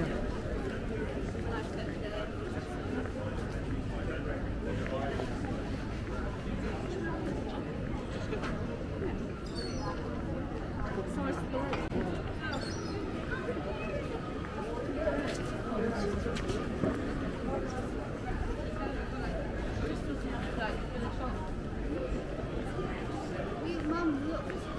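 Footsteps patter on paving stones.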